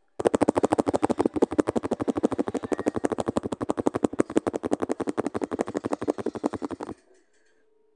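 Rapid splashing taps patter in a fast, steady rhythm.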